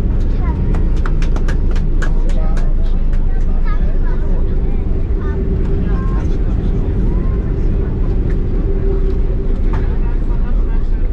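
The plane's wheels rumble over the runway.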